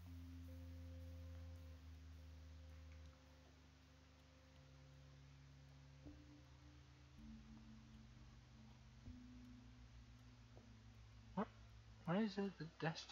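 Soft electronic music plays with slow, held notes.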